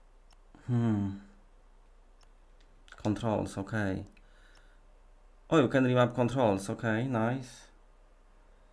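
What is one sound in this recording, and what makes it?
A man speaks casually into a close microphone in short bursts.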